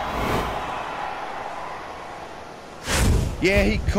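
A large crowd cheers in a stadium, then fades.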